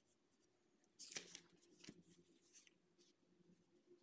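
A book thumps down on a surface.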